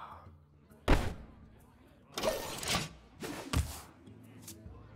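Magical game sound effects whoosh and crash in short bursts.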